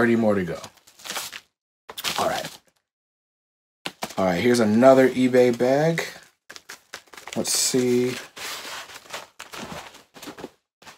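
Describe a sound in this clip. Paper rustles and crinkles as a young man handles a package.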